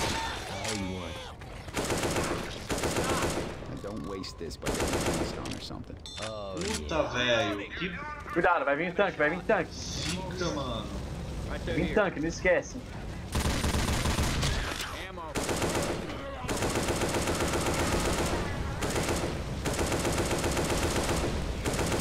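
Zombies snarl and groan.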